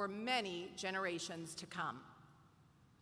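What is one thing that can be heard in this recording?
A woman speaks into a microphone, heard through loudspeakers in a large hall.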